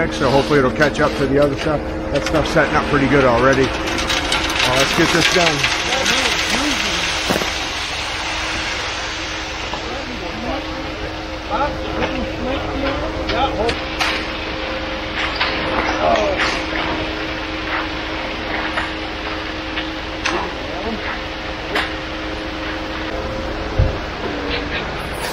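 A concrete truck's engine hums steadily throughout.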